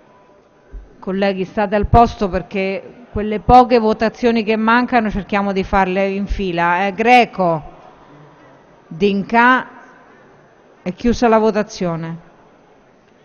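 A middle-aged woman speaks formally into a microphone in a large hall.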